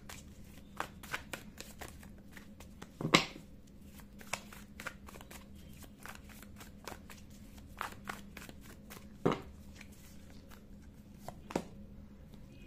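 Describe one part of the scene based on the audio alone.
Playing cards are shuffled with soft clicks and taps.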